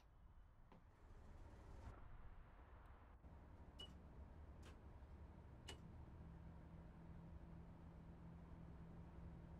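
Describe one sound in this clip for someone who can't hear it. A train engine hums and rumbles steadily.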